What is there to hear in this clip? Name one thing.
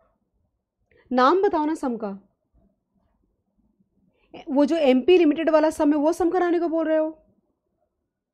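A woman speaks calmly into a close microphone, in two short bursts.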